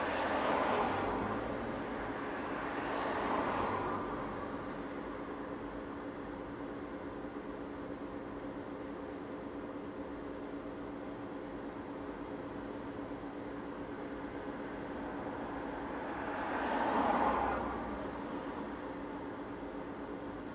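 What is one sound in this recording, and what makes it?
A car engine idles steadily with a low hum.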